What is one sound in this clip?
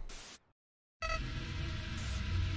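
A bright electronic tune begins to play.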